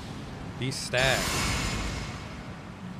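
A magical spell bursts with a bright shimmering whoosh.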